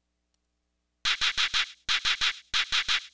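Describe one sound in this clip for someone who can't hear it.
Rapid electronic blips chirp in quick bursts.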